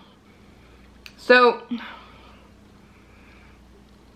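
A young woman sips a drink close by.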